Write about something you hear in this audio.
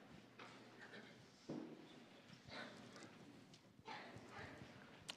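Footsteps thud across a wooden stage in a large echoing hall.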